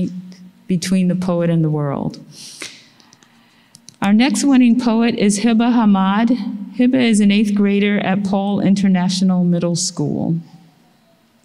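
An elderly woman speaks slowly through a microphone.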